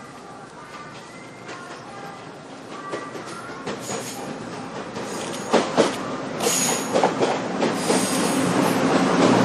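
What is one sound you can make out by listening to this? A train approaches and rumbles past close by.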